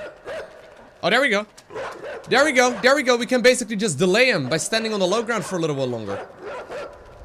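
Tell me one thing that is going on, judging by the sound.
A young man speaks close to a microphone with animation, his voice rising and exclaiming.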